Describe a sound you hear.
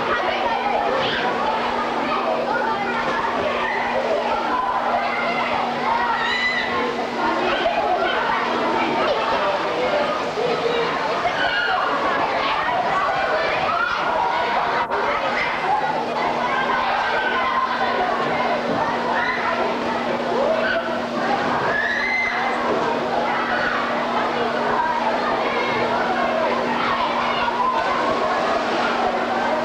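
Water splashes as swimmers play.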